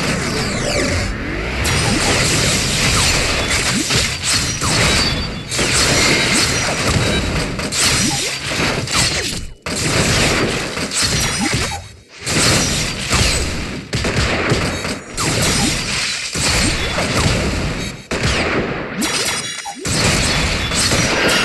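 Magic blasts whoosh and burst with crackling effects.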